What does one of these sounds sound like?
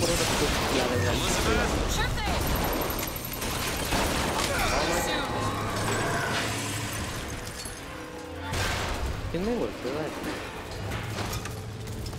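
Electric bolts crackle and zap in bursts.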